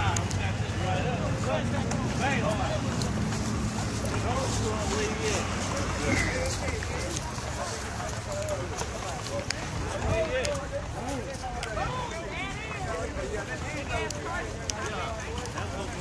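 Men and women talk and chatter nearby outdoors.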